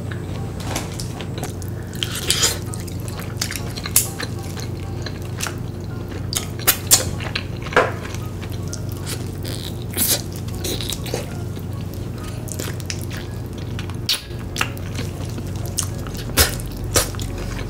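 A young woman chews crunchy food noisily, close to the microphone.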